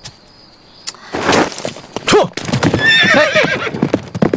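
A horse gallops away on a path.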